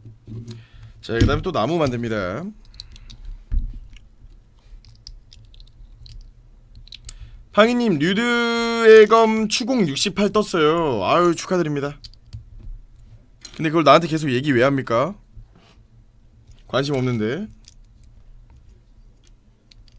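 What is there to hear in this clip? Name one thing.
Plastic toy bricks click together softly.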